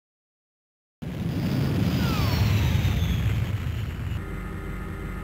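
A deep explosion booms and rumbles.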